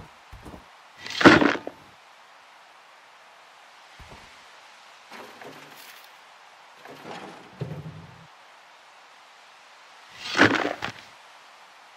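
Items clatter into a metal bucket.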